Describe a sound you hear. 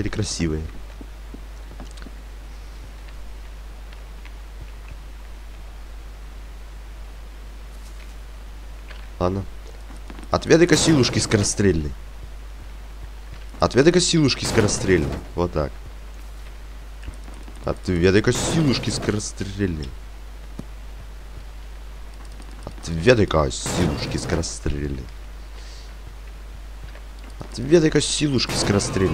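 A young man talks through a microphone in short bursts.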